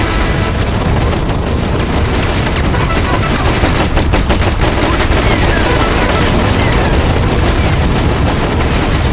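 A propeller plane engine drones overhead.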